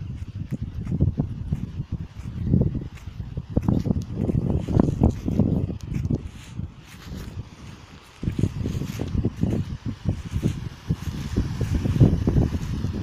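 Wind buffets the microphone in strong gusts outdoors.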